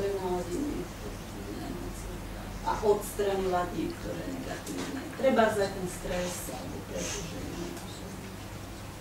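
A woman speaks calmly through a microphone in an echoing room.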